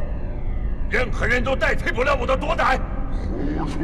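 A man speaks forcefully and close.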